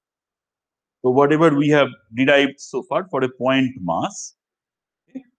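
An adult man lectures calmly through a microphone.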